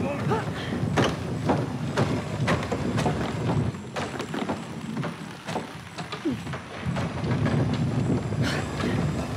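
Footsteps run over wooden planks and stony ground.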